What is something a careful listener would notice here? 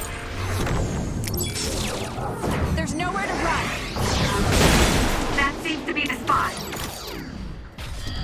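Loud blasts and crashing hits of a fight burst out in quick succession.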